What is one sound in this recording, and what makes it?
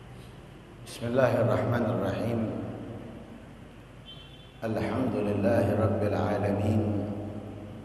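A man chants through a microphone in an echoing hall.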